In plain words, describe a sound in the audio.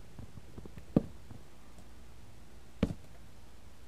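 A wooden block breaks with a sudden loud thump.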